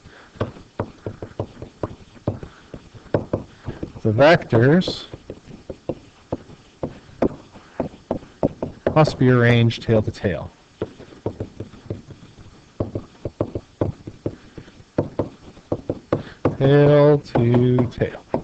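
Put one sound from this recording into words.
A pen taps and scratches on a hard writing surface.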